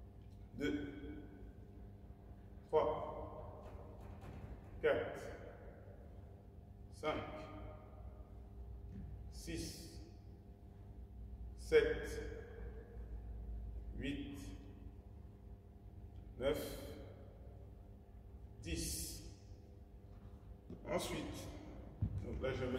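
A man speaks calmly in short phrases in a large echoing hall.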